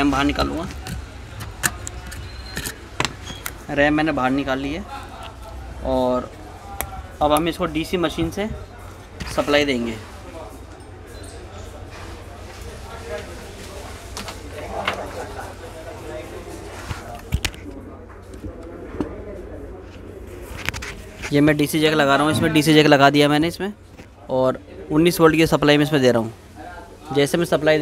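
Small parts click and tap as a circuit board is handled.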